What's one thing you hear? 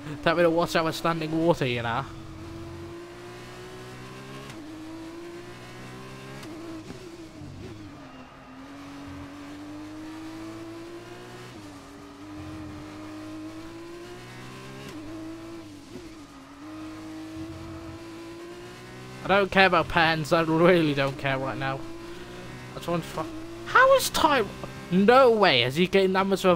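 A racing car engine roars steadily, rising and falling in pitch through gear changes.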